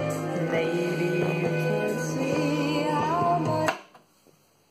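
Music plays loudly from a record player, then cuts off abruptly.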